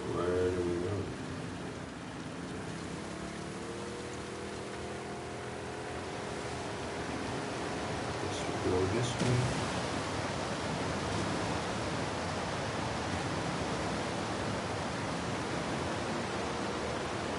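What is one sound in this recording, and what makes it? A small boat's outboard motor hums steadily.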